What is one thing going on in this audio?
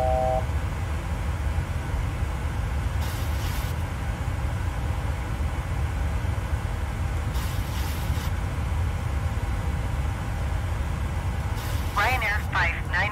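A jet engine hums low and steady at idle.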